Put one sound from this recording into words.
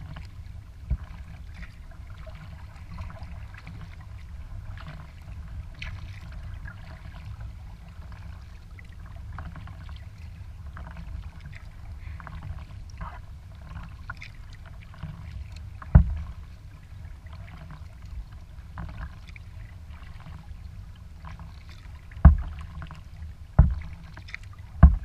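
Wind rumbles steadily across the water outdoors.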